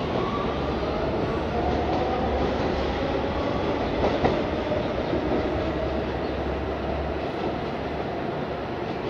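A subway train's motors whine as the train pulls away.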